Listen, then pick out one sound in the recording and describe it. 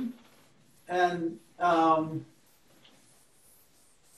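A felt eraser rubs across a chalkboard.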